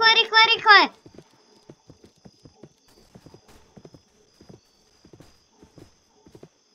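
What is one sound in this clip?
Horse hooves thud steadily on the ground at a canter.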